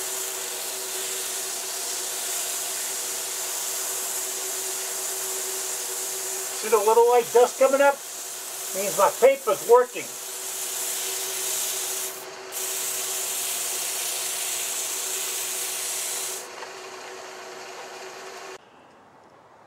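A lathe motor hums steadily with a hiss.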